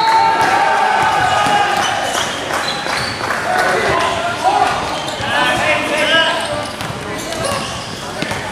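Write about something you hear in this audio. A basketball bounces on a court floor.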